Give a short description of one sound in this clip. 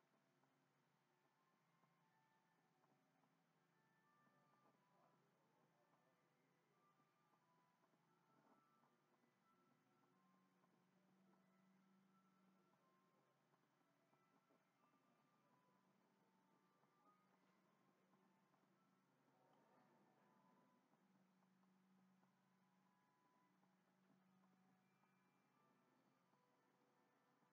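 Soft, gentle music plays quietly from a television.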